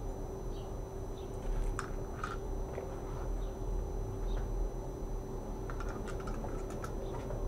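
Metal chain jewellery jingles and clinks close by.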